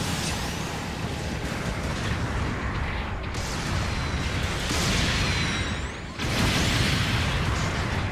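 Gunfire and blasts crackle in bursts.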